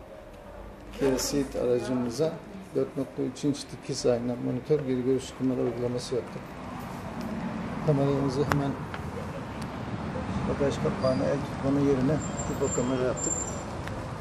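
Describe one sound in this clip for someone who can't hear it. An older man talks calmly close by, explaining.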